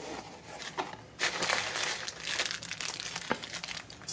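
Paper packing rustles and crinkles.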